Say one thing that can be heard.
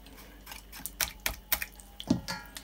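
Metal clinks against a metal bowl.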